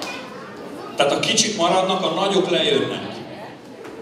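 A woman speaks loudly through a microphone in a large echoing hall.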